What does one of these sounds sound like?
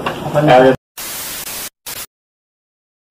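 Static hisses in short bursts.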